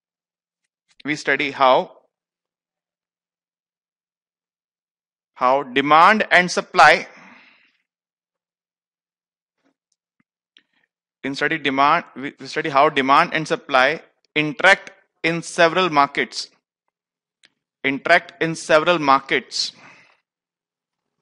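A man speaks clearly into a close headset microphone, lecturing in bursts with pauses.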